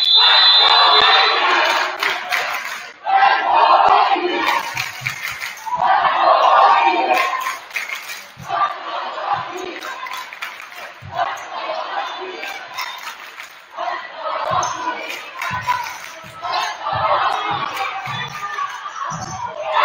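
A crowd cheers and chatters loudly in a large echoing gym.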